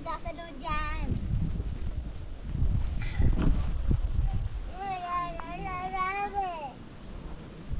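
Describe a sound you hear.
A young girl speaks in a high voice nearby.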